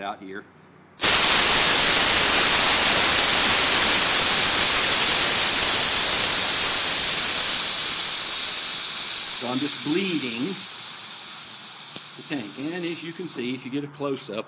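Compressed gas hisses loudly from a bottle valve, then slowly weakens.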